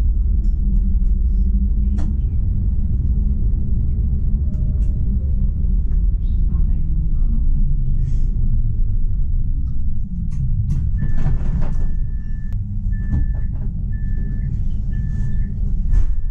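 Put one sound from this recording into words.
A tram rumbles and rattles along the rails.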